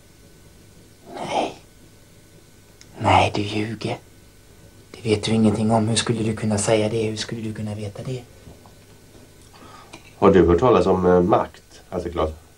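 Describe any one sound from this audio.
A younger man talks with animation close by.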